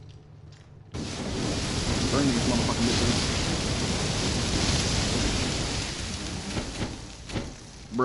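A flamethrower roars with a rushing blast of fire.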